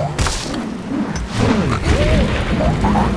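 A cartoon bird whooshes through the air after being flung.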